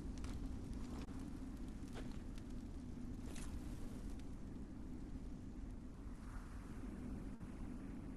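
A fire crackles softly.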